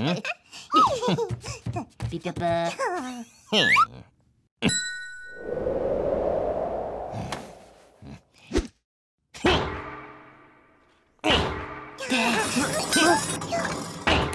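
A cartoon character speaks in a high, squeaky voice with animation.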